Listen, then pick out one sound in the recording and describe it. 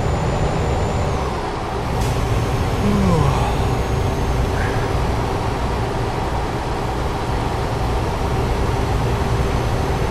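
Tyres roll on the road with a steady hum.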